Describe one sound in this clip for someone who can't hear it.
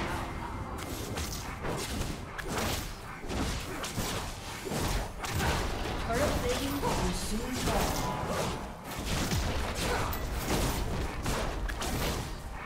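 Spell blasts and magic effects crackle and whoosh in a fast game battle.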